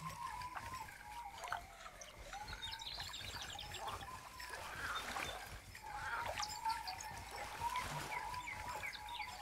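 A fishing reel whirs steadily as the line is wound in.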